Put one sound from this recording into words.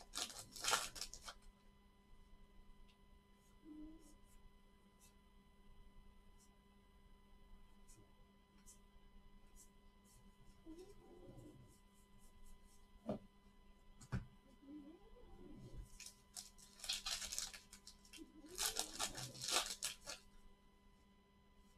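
Trading cards rustle and slide against each other in gloved hands.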